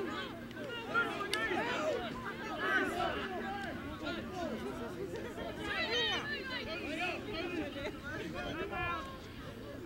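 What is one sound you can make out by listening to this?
Young players shout and call out to each other outdoors.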